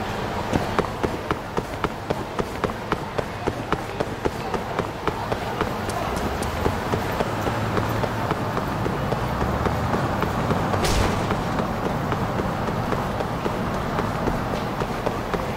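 Quick footsteps slap on pavement as a man runs.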